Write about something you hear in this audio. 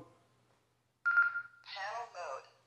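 A handheld radio gives a short beep.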